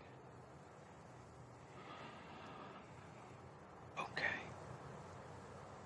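A man speaks quietly up close.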